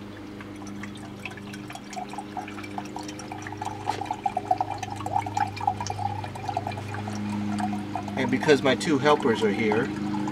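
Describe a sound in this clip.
Hot water pours from a flask into a cup.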